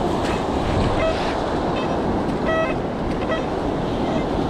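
A metal detector beeps in short tones.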